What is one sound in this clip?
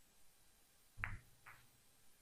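Billiard balls knock together softly.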